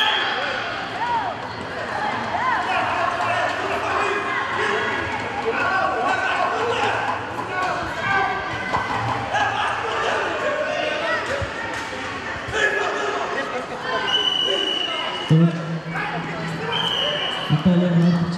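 Wrestlers' feet scuff and thump on a mat.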